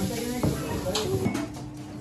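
Several adults chat in a low murmur nearby.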